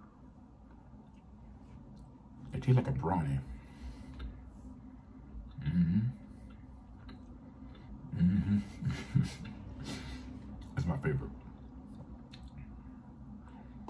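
A man chews food with wet, smacking sounds.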